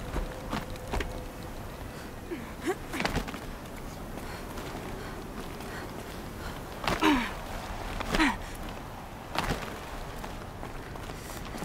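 Hands scrape and grip on rock while climbing.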